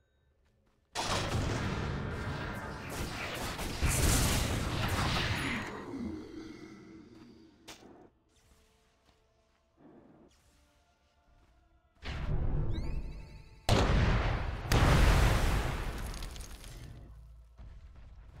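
Magic blasts and impacts crash loudly during a game battle.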